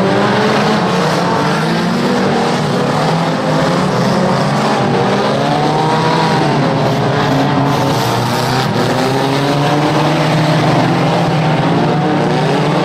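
Several car engines roar and rev loudly.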